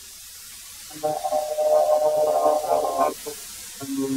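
A board grinds through a thickness planer.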